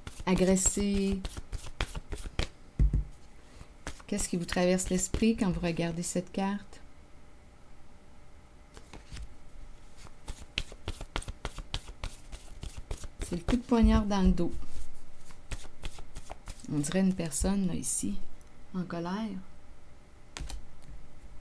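A card taps down onto a table.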